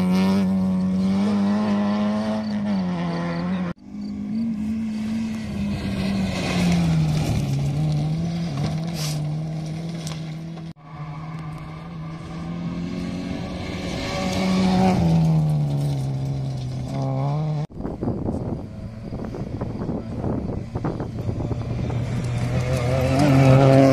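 A rally car engine roars and revs hard, rising and falling in pitch.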